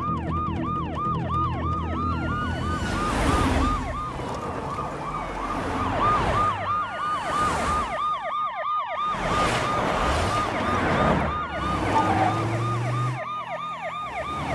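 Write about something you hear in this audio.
A police siren wails rapidly and without a break.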